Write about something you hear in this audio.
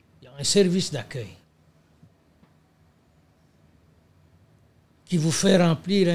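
An elderly man speaks with animation, close to a microphone.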